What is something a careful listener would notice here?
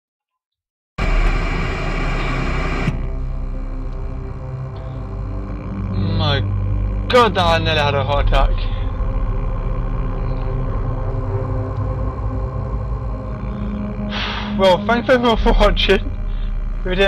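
Static hisses and crackles steadily.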